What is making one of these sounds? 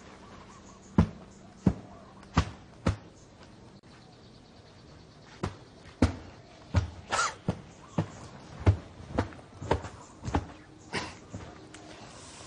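A feather duster thumps against sofa cushions.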